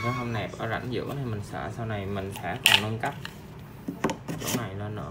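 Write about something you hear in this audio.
A plastic panel knocks and slides into a plastic post.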